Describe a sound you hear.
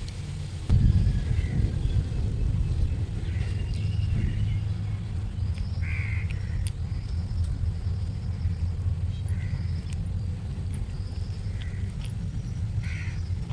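A woman chews food loudly and smacks her lips close by.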